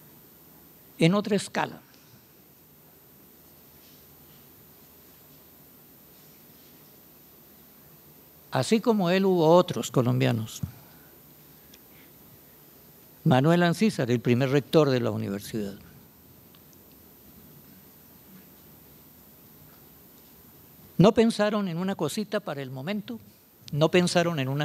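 An elderly man speaks calmly into a microphone, with long pauses between phrases.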